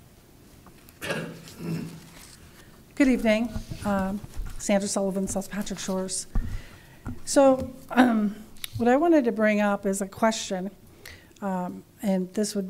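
A second woman speaks into a microphone.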